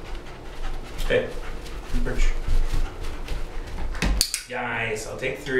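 A man talks calmly to a dog nearby.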